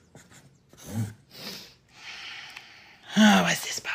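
A marker squeaks as it writes on cardboard.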